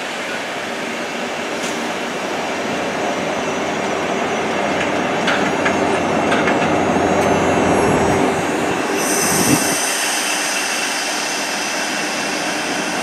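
A train rolls past close by, its wheels rumbling and clattering on the rails.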